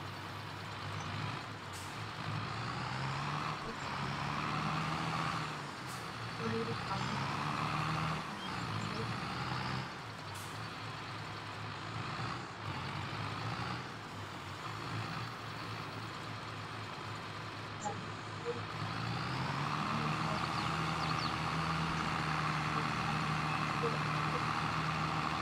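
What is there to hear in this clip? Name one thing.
A tractor engine hums and revs up and down.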